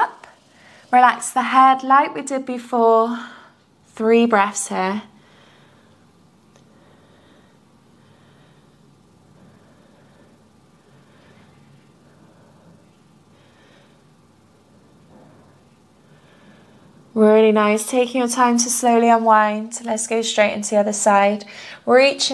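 A young woman speaks calmly and clearly into a nearby microphone, with long pauses.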